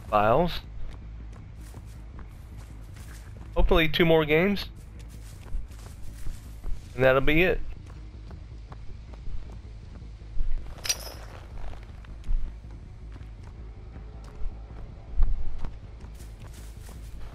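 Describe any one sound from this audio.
Footsteps pad steadily through grass and over hard ground.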